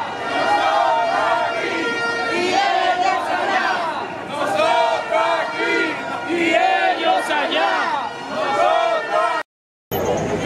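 A crowd of protesters chants loudly outdoors.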